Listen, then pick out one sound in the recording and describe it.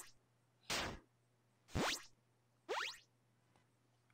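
Short retro video game sound effects whoosh and zap during a battle.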